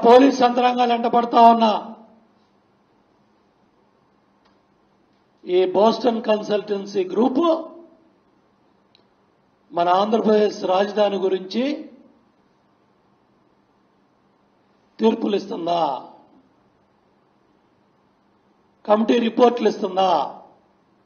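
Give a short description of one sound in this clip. A middle-aged man speaks into a microphone in short bursts, with pauses between them.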